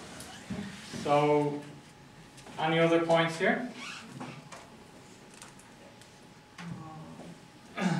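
A man reads aloud slowly.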